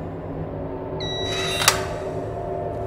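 A locker door clicks open.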